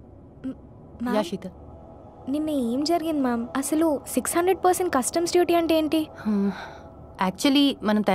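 A young woman speaks with concern, close by.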